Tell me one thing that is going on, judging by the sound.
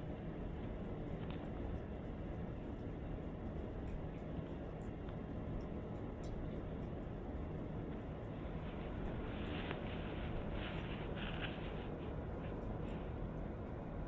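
Small claws scratch and rustle on cloth.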